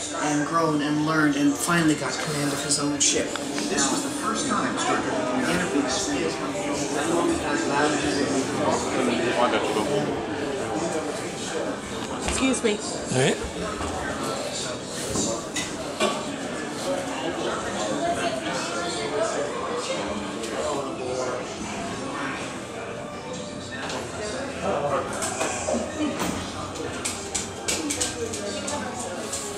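A crowd of adults murmurs and chatters nearby in an echoing hall.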